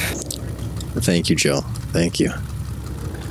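A young man speaks briefly and casually into a close microphone.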